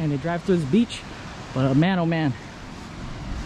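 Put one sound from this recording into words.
A man speaks animatedly, close to the microphone.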